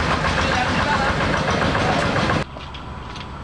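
A two-wheel walking tractor drives along a wet road.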